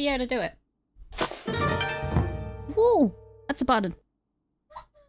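A short electronic alert jingle plays.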